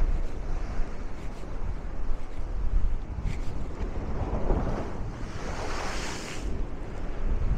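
Waves crash and wash against a sea wall.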